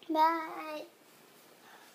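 A young child calls out in a high voice nearby.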